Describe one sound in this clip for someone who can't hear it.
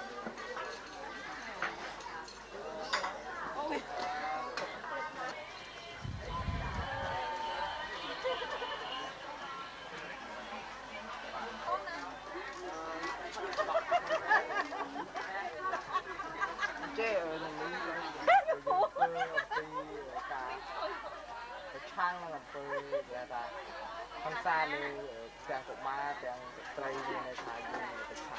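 A busy crowd chatters in the background.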